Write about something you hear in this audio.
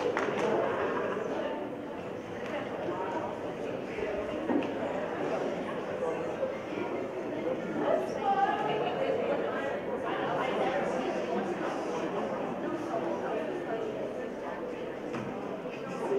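A crowd of young people murmurs and chatters in a large echoing hall.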